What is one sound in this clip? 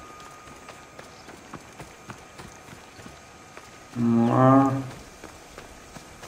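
Footsteps patter quickly on dirt and rock.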